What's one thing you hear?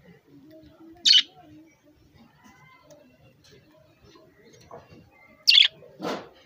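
A budgerigar gives short, sharp chirps.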